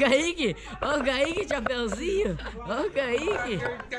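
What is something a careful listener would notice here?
A young man laughs loudly up close.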